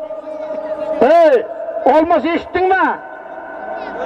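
A man shouts loudly in long calls nearby.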